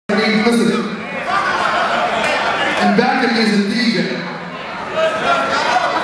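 A man raps loudly into a microphone through loudspeakers in a large hall.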